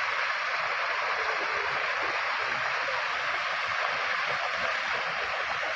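A waterfall pours and splashes steadily.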